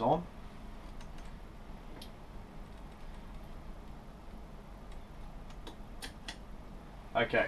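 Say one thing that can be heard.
Metal parts click and clack.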